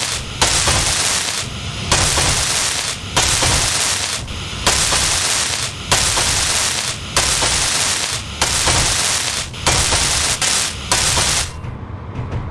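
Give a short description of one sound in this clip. A welding tool hisses and crackles in short repeated bursts.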